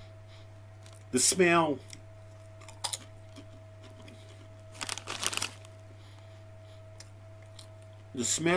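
A man crunches on a potato chip.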